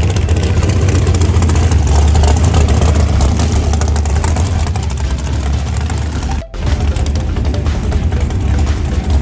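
A dragster engine idles with a loud, deep, rumbling roar close by.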